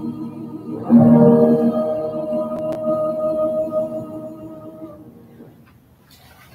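Several voices sing and hold a final note.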